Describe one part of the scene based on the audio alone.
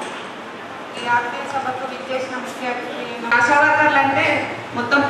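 A woman speaks steadily into a microphone.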